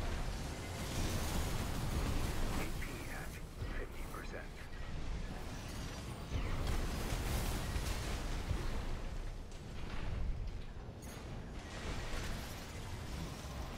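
Explosions and mechanical roars rumble loudly.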